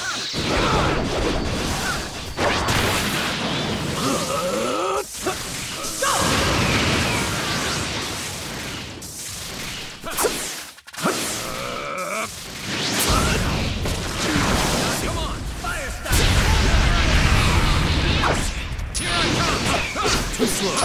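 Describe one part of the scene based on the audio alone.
Energy blasts crackle and whoosh in a fight.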